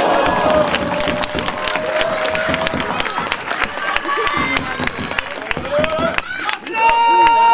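A crowd claps quickly in an echoing hall.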